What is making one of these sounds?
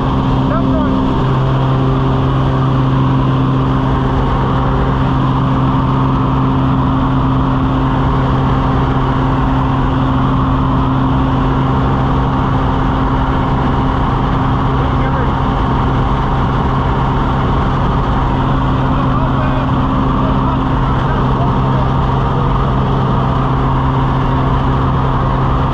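A small plane's engine drones loudly and steadily from close by.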